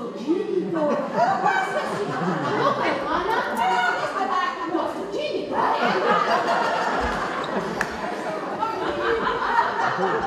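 Two middle-aged women talk with animation in a room that echoes a little.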